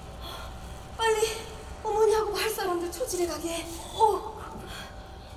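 A woman speaks with emotion through a microphone in a large hall.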